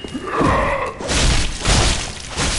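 A blade swings and clashes in a fight.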